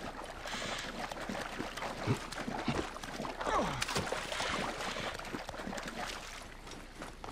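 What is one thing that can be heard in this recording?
Water splashes and swishes as a person wades through it.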